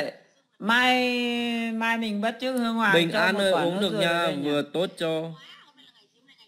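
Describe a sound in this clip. A man sings in a wavering voice close to a phone microphone.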